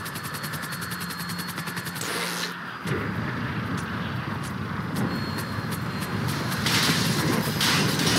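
A helicopter's rotor whirs steadily.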